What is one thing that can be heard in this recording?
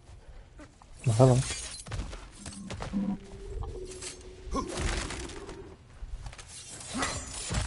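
Hands scrape and grip rough rock while climbing.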